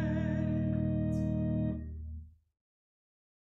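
An organ holds a loud chord that ends abruptly.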